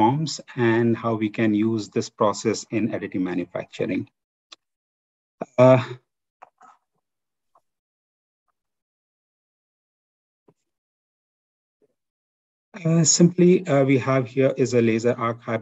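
A man speaks calmly through an online call, pausing now and then.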